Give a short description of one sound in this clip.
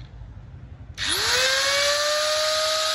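An angle grinder motor whirs up to speed and runs with a high whine.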